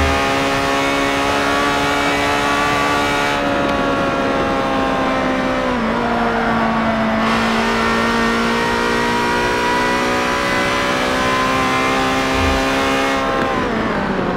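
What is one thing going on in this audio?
A race car engine roars at high, steady revs.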